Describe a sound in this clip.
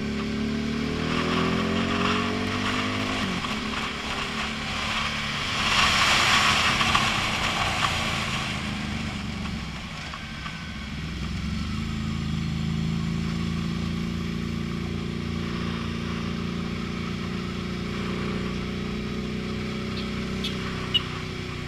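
A motorcycle engine hums steadily and changes pitch as it shifts gears.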